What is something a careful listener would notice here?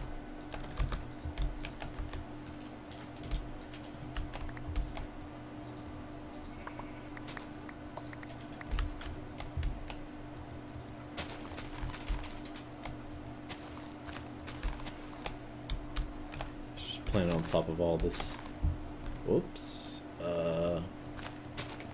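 Short crunching clicks sound as blocks are broken in a video game.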